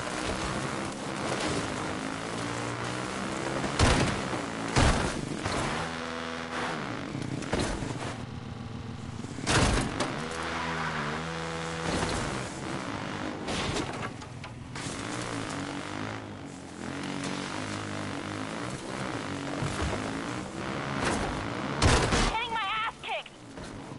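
A motorbike engine hums and revs up and down steadily.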